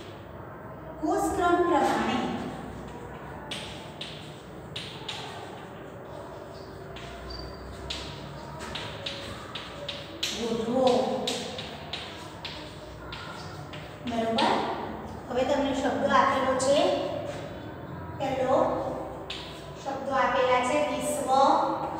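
A woman speaks clearly and calmly nearby.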